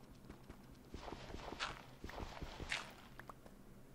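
Blocks of dirt crunch as they are dug away.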